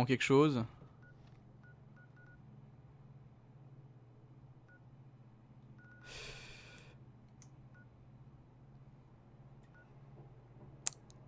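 A handheld device beeps softly as its map is scrolled.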